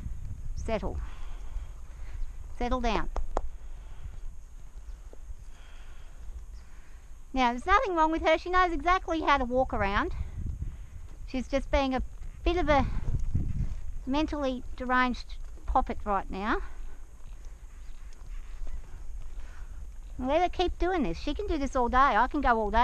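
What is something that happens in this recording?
A horse's hooves thud softly on dirt at a walk.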